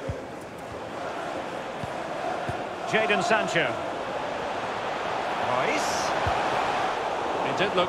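A stadium crowd roars steadily, swelling slowly.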